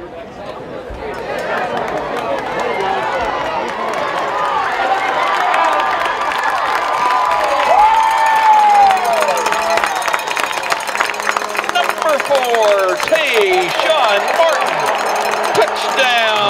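A large outdoor crowd cheers and shouts, swelling louder.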